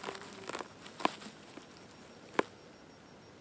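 A mushroom stem snaps as it is pulled from the ground.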